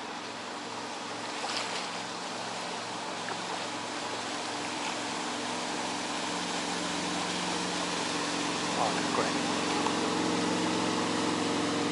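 A motorboat engine drones, growing louder as the boat approaches.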